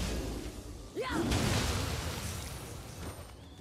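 A loud magical blast bursts and crackles.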